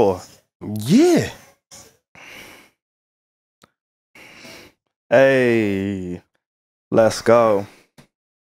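A young man speaks with animation close to a microphone, his voice rising and falling in pitch.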